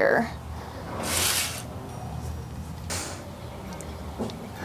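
A pitchfork scrapes and rustles through straw and dirt.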